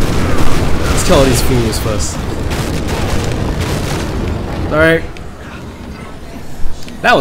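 Zombies groan and moan.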